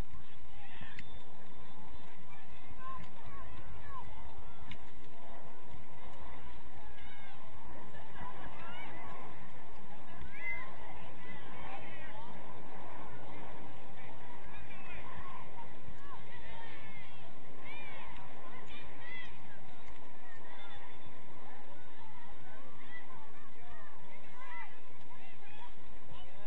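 Young women playing football shout to one another in the distance, out in the open air.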